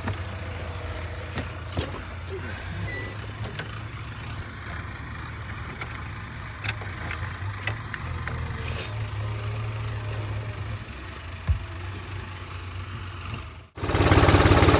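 A tractor engine idles with a low, steady rumble.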